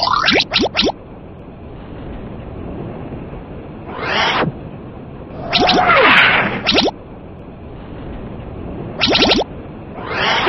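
Quick falling whistle sound effects zip by.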